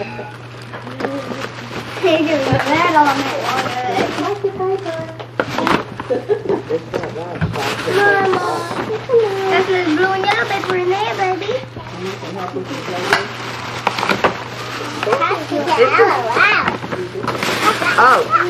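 A woman talks to a baby in a high, animated voice close by.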